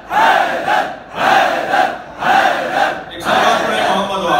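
People clap hands in rhythm.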